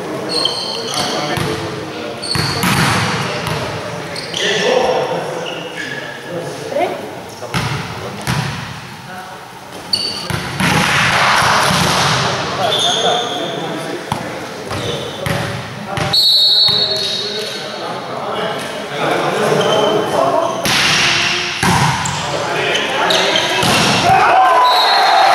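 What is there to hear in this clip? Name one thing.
A volleyball is hit with sharp slaps in a large echoing hall.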